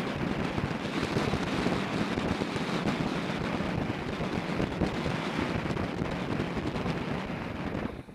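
Wind buffets loudly against a microphone while riding outdoors.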